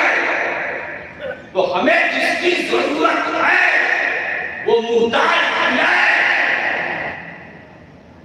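An elderly man speaks forcefully into a microphone over loudspeakers, echoing in a large space.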